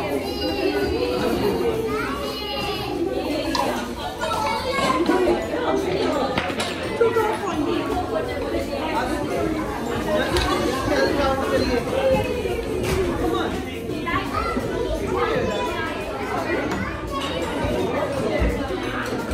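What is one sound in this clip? Women talk nearby with one another.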